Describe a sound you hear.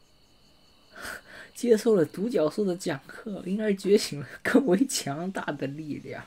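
A young woman talks with animation into a microphone, close up.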